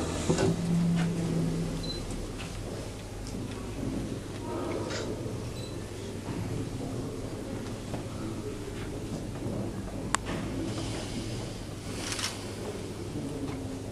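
A middle-aged woman speaks calmly to an audience.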